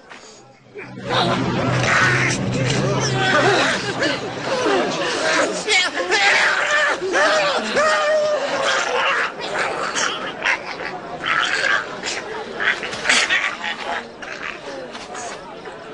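A crowd of people cry out and wail loudly.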